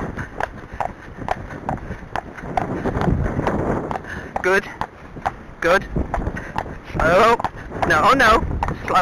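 Horse hooves clop steadily on a hard road.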